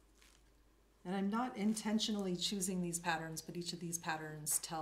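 A middle-aged woman speaks calmly into a microphone.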